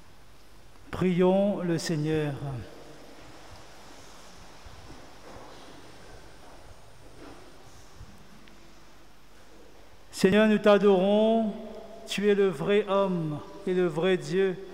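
A man chants through a microphone in a reverberant hall.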